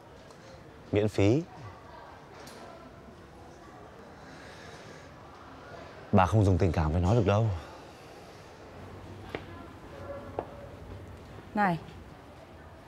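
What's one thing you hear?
A middle-aged woman speaks curtly and close by.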